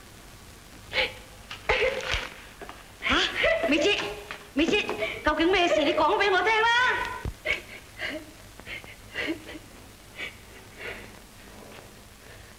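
A young woman sobs and weeps.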